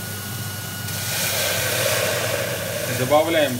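Liquid pours into a metal pot with a brief rushing hiss.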